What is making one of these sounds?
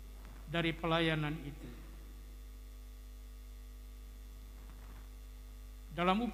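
A man chants slowly into a microphone, heard over a loudspeaker in a large room.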